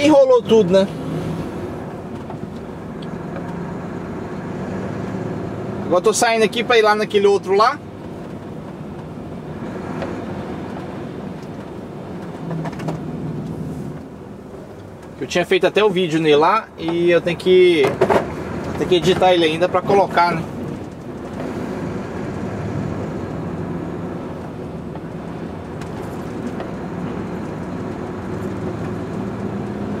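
A truck engine hums steadily as the truck drives along.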